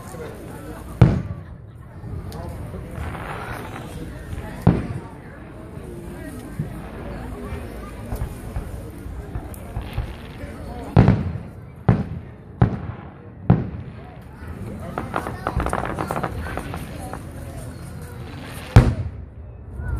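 Fireworks boom and bang in the distance.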